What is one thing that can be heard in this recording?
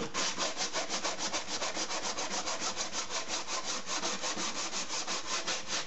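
Sandpaper rubs quickly back and forth over a piece of wood.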